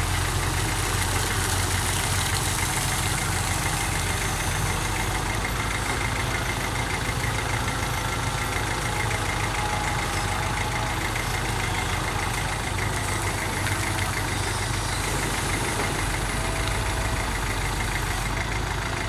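Water splashes and pours from an excavator bucket.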